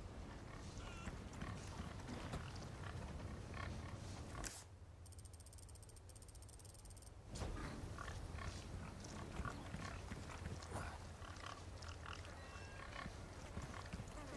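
Footsteps crunch on dirt and dry grass.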